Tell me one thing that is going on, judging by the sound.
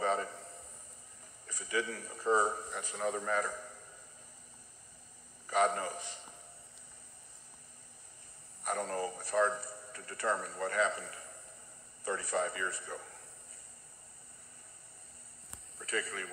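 An older man speaks slowly and calmly through a microphone, with long pauses between phrases.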